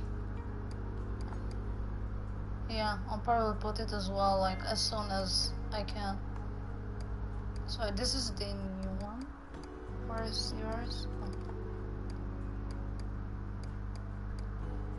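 Soft menu clicks tick as a selection moves between items.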